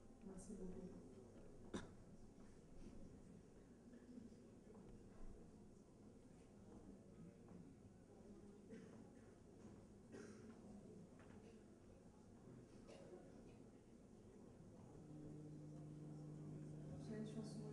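A man strums an acoustic guitar through speakers in a large hall.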